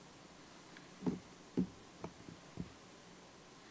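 A microphone thumps and knocks as a hand adjusts it.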